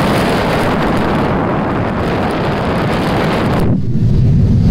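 Wind rushes loudly past the aircraft, then suddenly drops away.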